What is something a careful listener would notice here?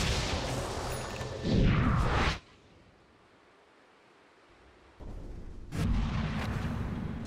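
Magical spell effects whoosh and crackle in bursts.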